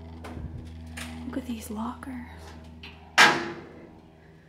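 A metal locker door creaks and clanks.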